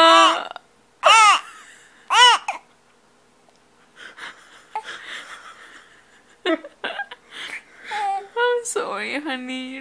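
A baby coos and babbles close by.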